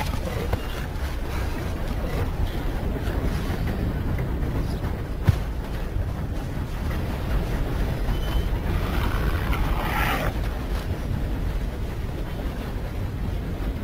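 Footsteps patter on grass and dirt.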